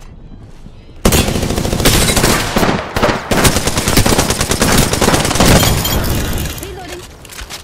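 Rapid gunfire bursts loudly, with shots cracking close by.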